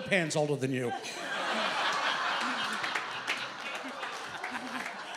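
A crowd laughs and cheers nearby.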